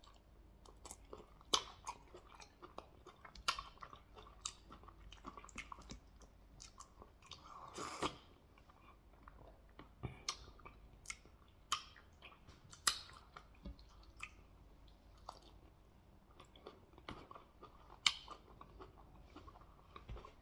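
Sticky food squelches as fingers tear it apart.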